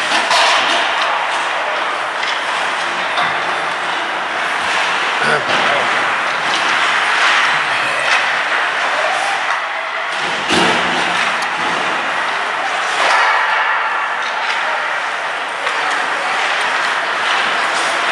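Skates scrape and hiss across ice in a large echoing rink.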